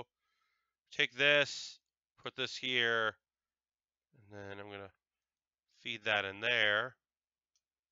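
A middle-aged man speaks with animation close to a microphone.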